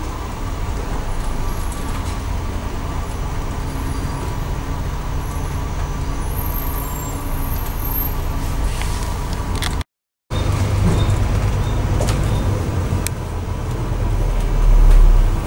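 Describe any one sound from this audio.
A vehicle engine rumbles low and steady from inside the vehicle, swelling louder near the end.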